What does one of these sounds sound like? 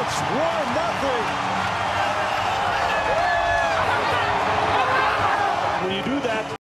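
A large stadium crowd cheers loudly.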